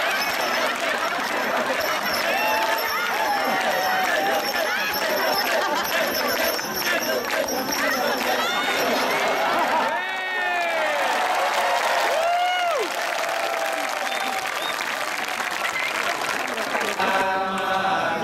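A large crowd shouts and cheers loudly.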